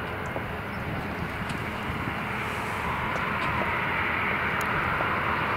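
A Boeing 737 jet's twin turbofan engines whine and rumble as it taxis outdoors, growing louder as it approaches.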